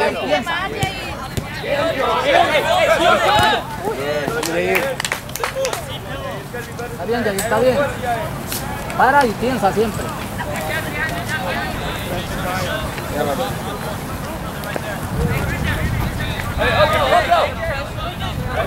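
Spectators nearby talk and call out.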